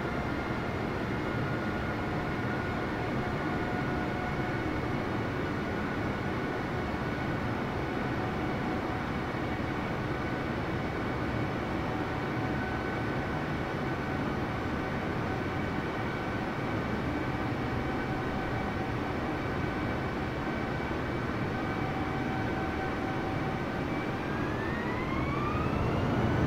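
A jet engine drones steadily with a high whine.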